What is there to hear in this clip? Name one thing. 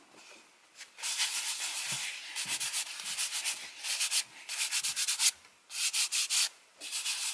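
A hand rubs across rough handmade paper.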